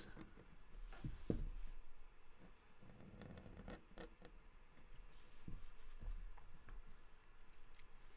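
Paper rustles as hands move a sheet.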